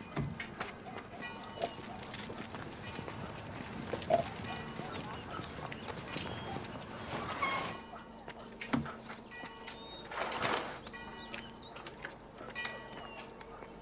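A bicycle rolls over paving stones.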